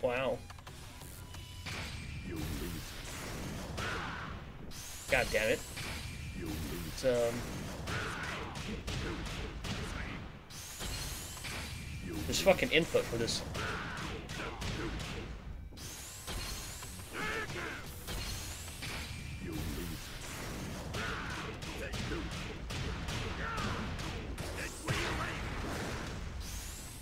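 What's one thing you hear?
A fighter grunts and shouts with each strike.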